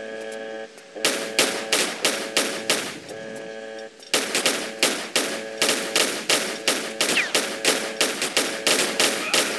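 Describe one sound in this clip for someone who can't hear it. Pistols fire shot after shot.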